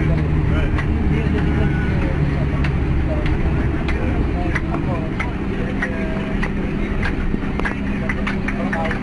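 Loose parts of a bus rattle and knock over bumps.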